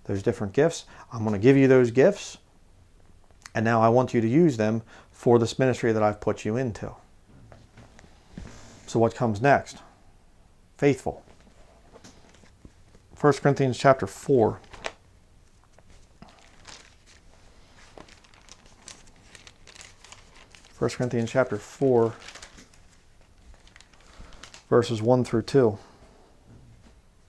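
A man speaks calmly and clearly into a close microphone, with pauses.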